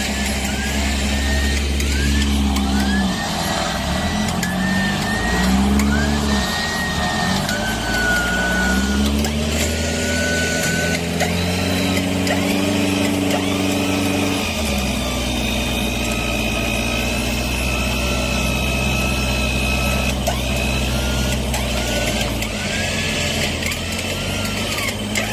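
A vehicle engine revs and strains.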